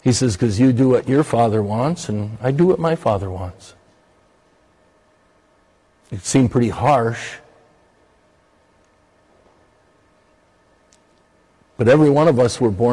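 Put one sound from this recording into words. An older man speaks with animation through a microphone, pausing between phrases.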